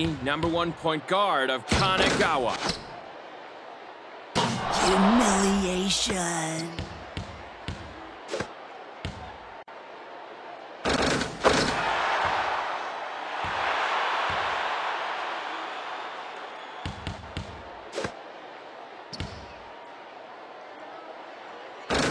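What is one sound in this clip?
A basketball bounces with hollow thuds on a wooden court.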